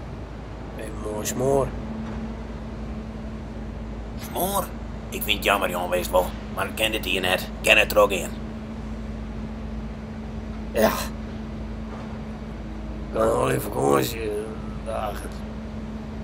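A younger man speaks in a low, quiet voice nearby.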